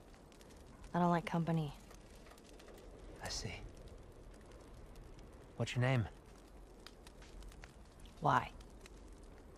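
A teenage girl answers in short, wary replies.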